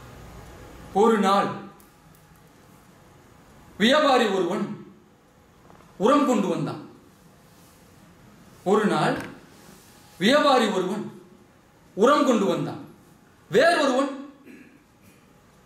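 A young man shouts loud, short sung calls in bursts, in a room with some echo.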